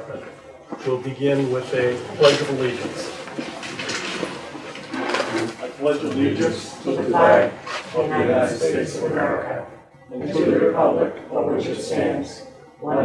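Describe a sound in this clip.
Several men and women chat at once nearby.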